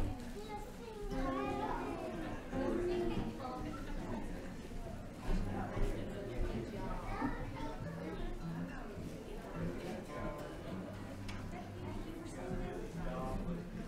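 Men talk quietly in a large room.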